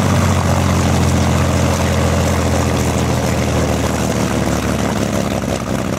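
Propeller aircraft engines drone loudly and steadily.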